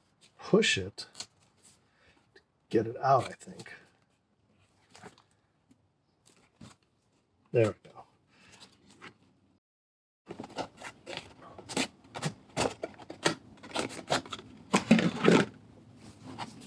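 A cardboard box rubs and scrapes as hands turn it over.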